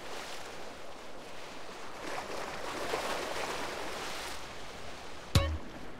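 Water splashes as a figure swims.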